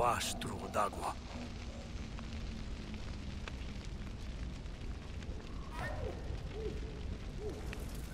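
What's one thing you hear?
Dry vines catch fire and burn with a loud crackle.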